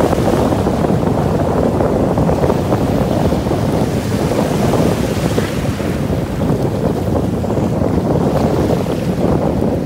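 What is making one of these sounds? Water splashes as a person moves through the waves.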